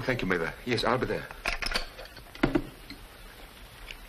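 A telephone receiver clicks as it is hung up.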